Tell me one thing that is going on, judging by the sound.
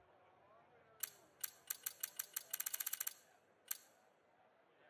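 Menu clicks tick rapidly.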